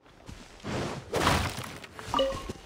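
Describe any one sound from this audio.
A burst of dirt and rocks crashes loudly.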